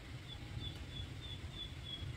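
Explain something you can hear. Oil trickles into a metal pan.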